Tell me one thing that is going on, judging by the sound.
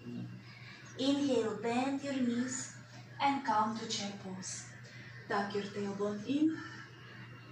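A woman speaks calmly, as if giving instructions, close by.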